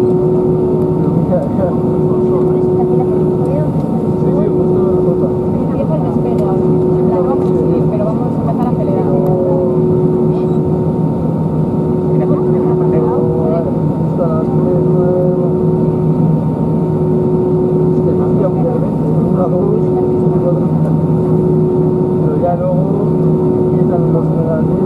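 Jet engines hum in a steady, low drone with a faint whine.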